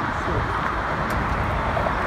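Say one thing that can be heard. A car drives slowly past across pavement.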